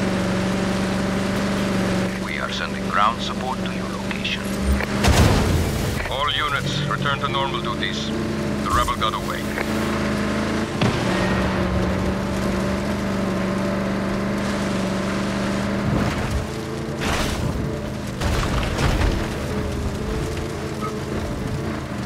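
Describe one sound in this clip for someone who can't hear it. An armoured military truck's engine drones at speed.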